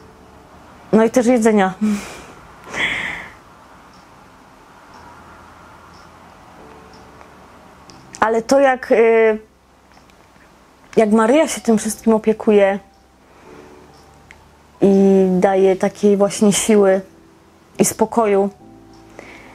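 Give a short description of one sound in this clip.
A woman speaks calmly and thoughtfully, close to a microphone.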